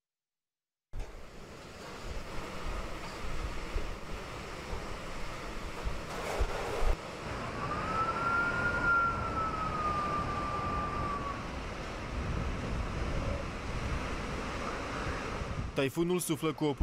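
Strong wind roars and rain pours down outdoors.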